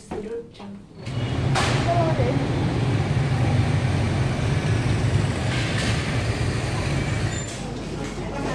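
A motorbike engine hums steadily close by.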